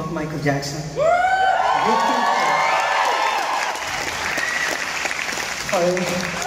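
A crowd cheers and screams loudly.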